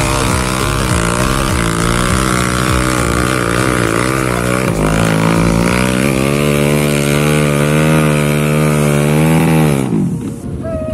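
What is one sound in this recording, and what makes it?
A dirt bike engine revs hard and climbs in pitch as it labours uphill.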